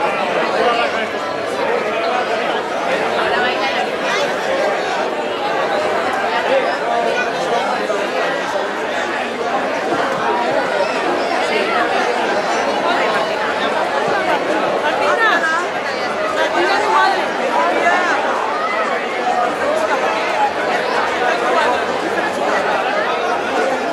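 A large crowd of men and women chatters loudly outdoors.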